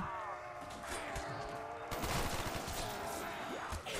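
A knife slashes through flesh with wet thuds.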